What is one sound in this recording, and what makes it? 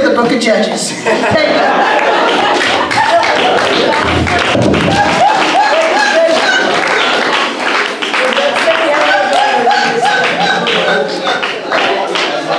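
A crowd of young people laughs loudly nearby.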